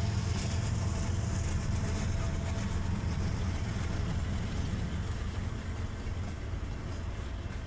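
Freight cars rattle and clatter over the rails.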